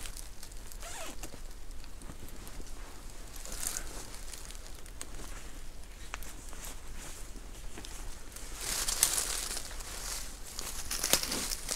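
A man rustles a cloth bag.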